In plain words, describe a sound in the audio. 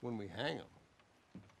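An elderly man speaks briefly.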